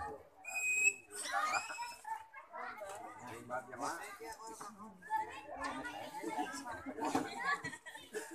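People murmur and chat in the background outdoors.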